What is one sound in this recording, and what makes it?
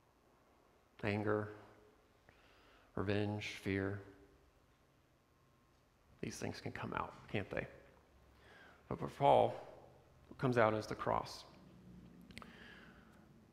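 A man speaks with emphasis, in pauses, through a microphone in a room with some echo.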